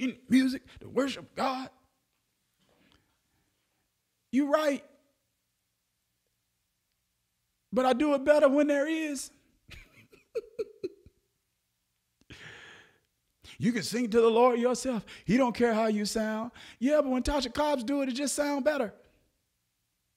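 A man speaks with animation into a close microphone, with pauses.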